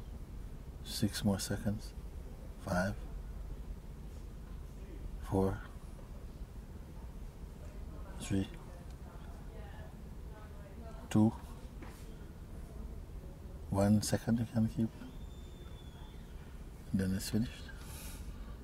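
A middle-aged man speaks softly and slowly, with long pauses, close to a microphone.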